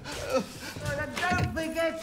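A hand knocks on a wooden door.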